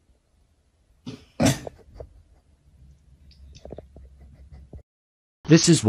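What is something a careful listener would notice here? A cat hisses and growls up close.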